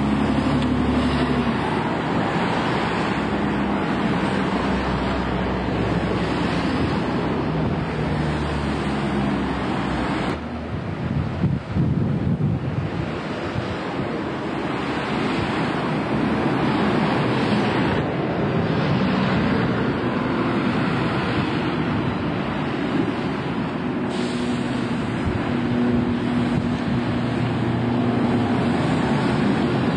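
A bus engine rumbles as a double-decker bus drives past close by.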